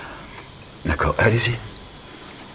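A man speaks briefly and tensely, close by.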